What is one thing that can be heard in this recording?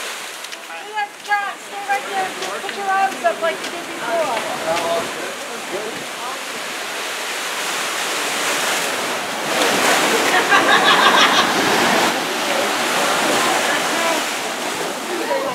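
Waves wash and splash against rocks and sand.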